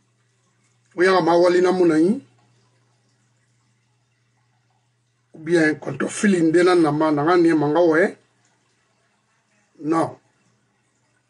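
An older man speaks calmly and close to a microphone, in short bursts with pauses.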